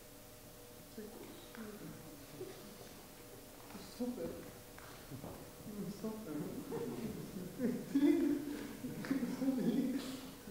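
A man speaks in a strained voice, close by.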